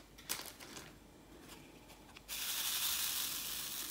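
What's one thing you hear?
A plastic film rustles as it is peeled back and laid down.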